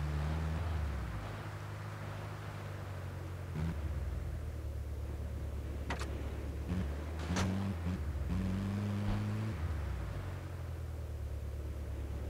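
An engine drones steadily as a vehicle drives over rough ground.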